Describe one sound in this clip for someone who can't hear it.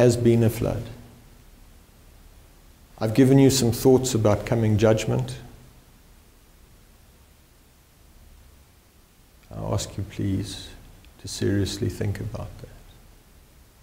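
A middle-aged man speaks calmly and deliberately into a nearby microphone, with long pauses.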